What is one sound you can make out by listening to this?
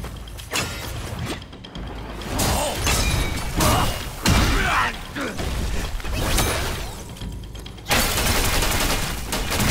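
Heavy weapon blows clash and thud in a fight.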